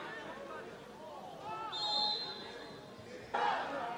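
A young man shouts and cheers outdoors, some distance away.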